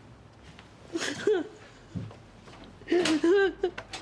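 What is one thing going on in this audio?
An older woman sobs.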